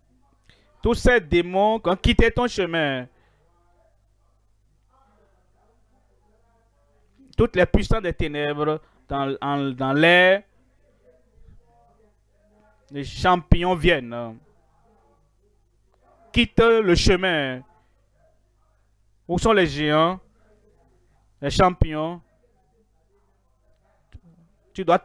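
A man preaches with animation through a microphone, in short bursts with pauses.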